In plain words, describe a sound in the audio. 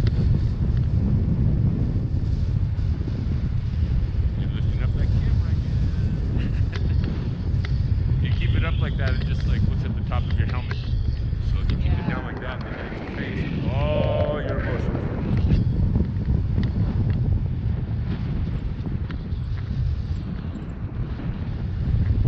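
Strong wind roars and buffets against a microphone.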